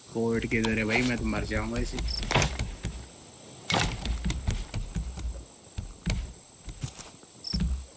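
Wood knocks as planks are placed.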